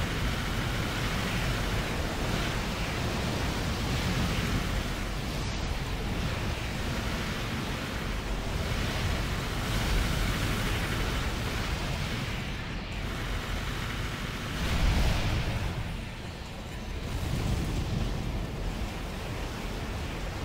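Water sprays and hisses beneath a skimming robot.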